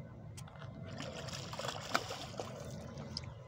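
A fish splashes in shallow water.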